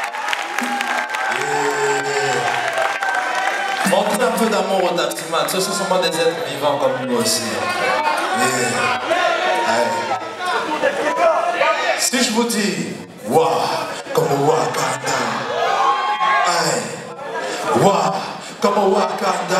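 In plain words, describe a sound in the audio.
A man sings into a microphone over loudspeakers in a large hall.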